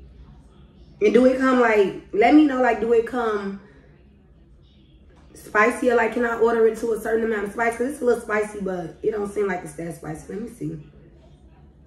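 A young woman talks close to a microphone with animation.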